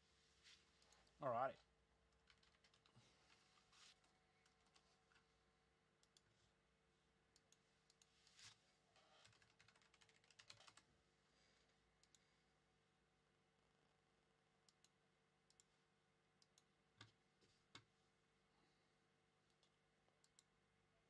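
Small objects click and tap as they are handled.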